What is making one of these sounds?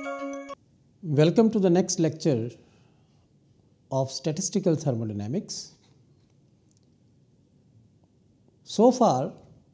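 A middle-aged man speaks calmly and clearly into a close microphone, with pauses.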